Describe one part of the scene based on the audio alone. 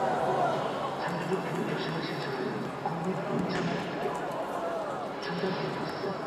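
A football is kicked with a dull thud now and then.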